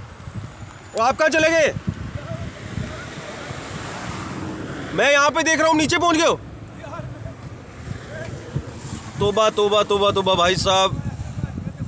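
A man shouts long, loud calls across an open hillside.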